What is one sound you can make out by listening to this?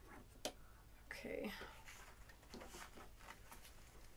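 Paper rustles as a woman handles it.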